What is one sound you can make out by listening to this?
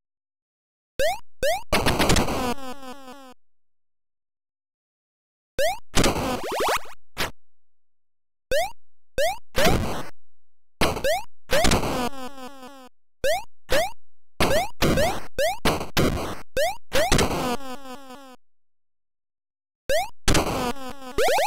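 Retro video game sound effects chirp and blast in short bursts.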